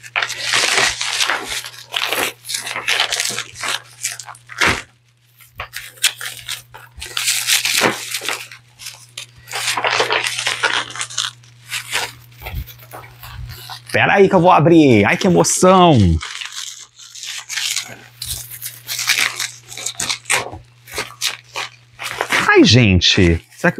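A plastic bag rustles and crinkles in someone's hands.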